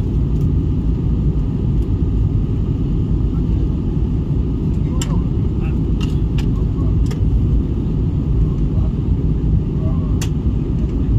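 A jet engine roars steadily as heard from inside an airliner cabin.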